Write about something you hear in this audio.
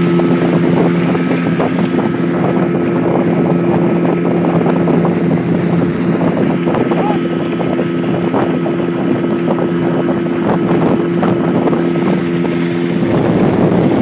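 An outboard motor drones steadily close by.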